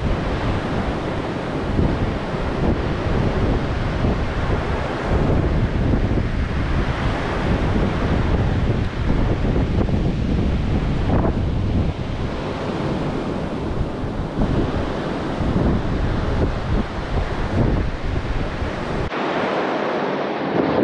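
Waves crash and wash onto a beach.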